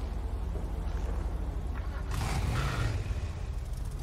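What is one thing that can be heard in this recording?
A car engine starts and revs loudly.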